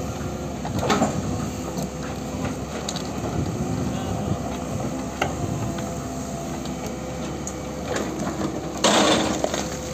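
Rocks and soil scrape and clatter as an excavator bucket digs.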